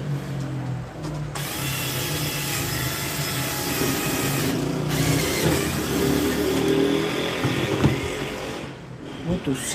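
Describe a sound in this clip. A cordless drill whirs steadily, its pitch rising and falling.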